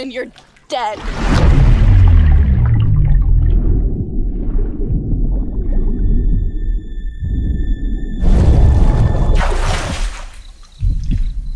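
Water rumbles and gurgles, muffled as if heard underwater.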